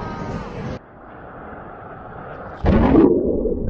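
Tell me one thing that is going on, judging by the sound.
Ocean waves break and churn nearby.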